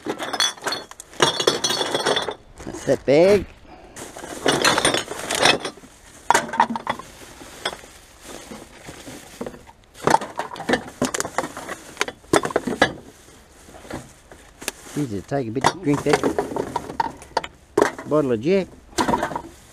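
Glass bottles and cans clink and rattle as they are handled.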